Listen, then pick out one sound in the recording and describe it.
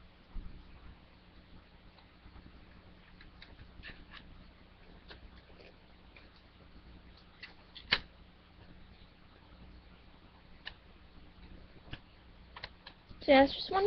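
A plastic disc case clicks and snaps as it is opened and handled.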